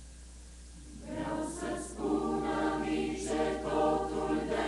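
A choir of men and women sings together in a reverberant hall.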